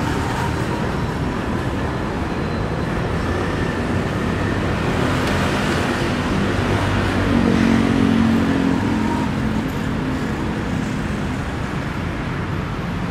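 Traffic rumbles steadily in the distance outdoors.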